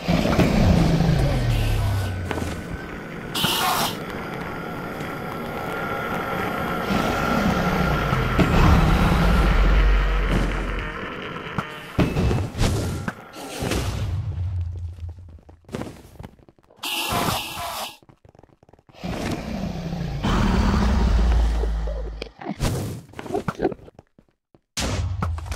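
A huge creature growls and roars with deep, rumbling cries.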